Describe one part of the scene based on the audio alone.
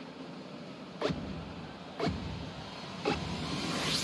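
A game countdown beeps.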